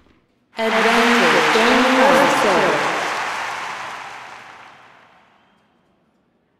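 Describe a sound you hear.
A crowd cheers and roars in a large stadium, then fades.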